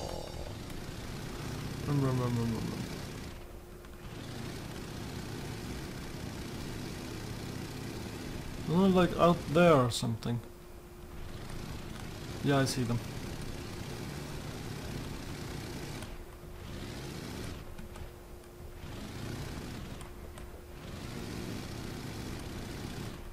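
A small helicopter's engine and rotor hum steadily.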